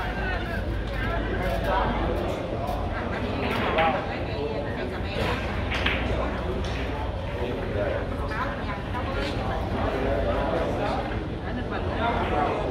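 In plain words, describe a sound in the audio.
A crowd of men chatters in a room with some echo.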